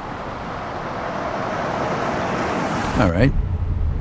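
A car drives along with a rushing hiss of tyres on the road.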